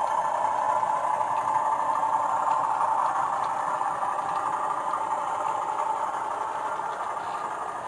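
Wagons of a model train rumble and click steadily along the track.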